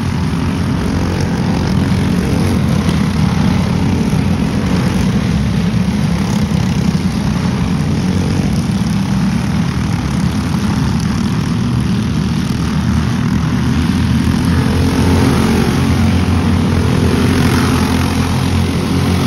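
Go-kart engines buzz and whine loudly as karts race past, outdoors.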